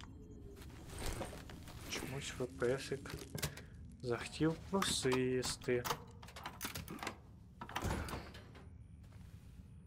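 A metal device clicks as it is handled.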